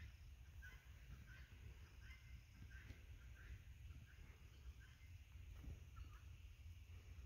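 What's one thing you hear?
A bird chirps repeatedly overhead.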